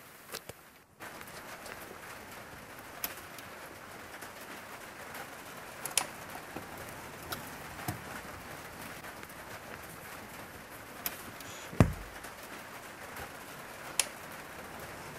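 Cable plugs click and knock as they are pushed into sockets.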